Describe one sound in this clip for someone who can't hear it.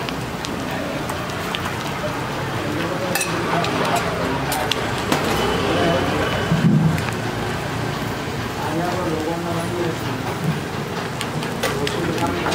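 Food sizzles steadily on a hot griddle.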